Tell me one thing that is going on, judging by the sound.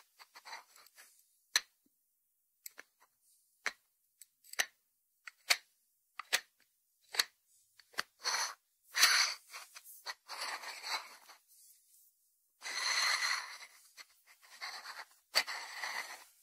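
Fingertips tap on a ceramic dish with a lid.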